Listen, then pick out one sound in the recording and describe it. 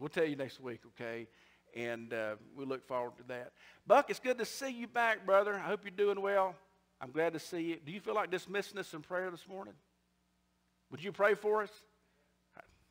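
A middle-aged man preaches with animation through a microphone.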